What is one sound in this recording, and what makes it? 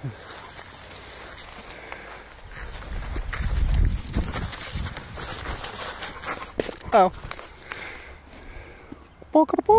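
A dog rustles through low shrubs.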